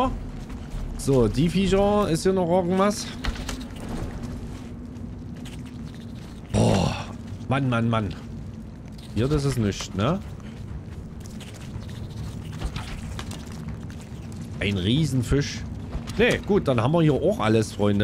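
A man talks with animation through a close microphone.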